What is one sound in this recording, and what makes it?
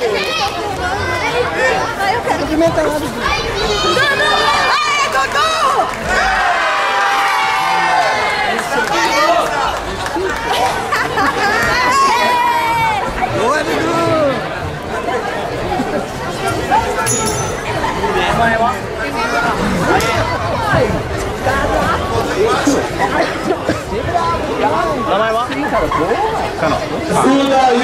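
A crowd in a large echoing hall shouts and cheers.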